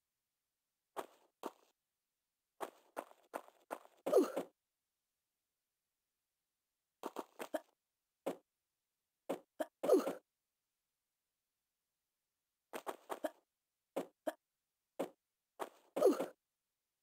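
Quick footsteps patter on a stone floor in short bursts.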